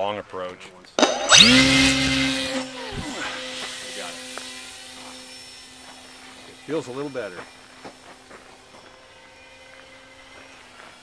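A model airplane's electric motor whines loudly up close, then buzzes more faintly as the plane flies off.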